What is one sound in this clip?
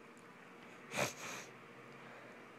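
A man exhales sharply with effort.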